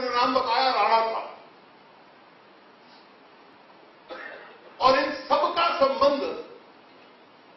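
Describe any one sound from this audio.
A man speaks with animation into a microphone, in pauses.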